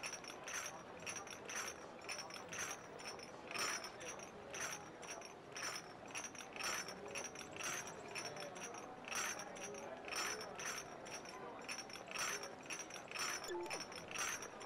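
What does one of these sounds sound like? Footsteps tap quickly and evenly on pavement.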